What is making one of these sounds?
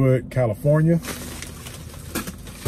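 A plastic mailer bag crinkles and rustles.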